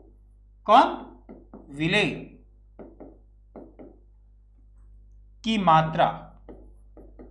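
A young man speaks loudly in short bursts, close to a microphone.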